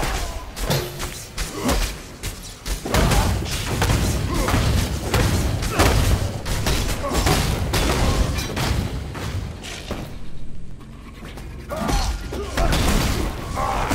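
Spells crackle and blast in rapid bursts.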